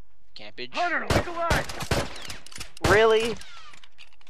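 A rifle fires several sharp shots in quick bursts.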